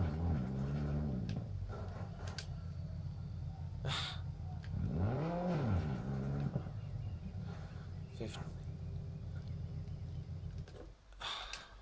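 A car engine revs and drones loudly.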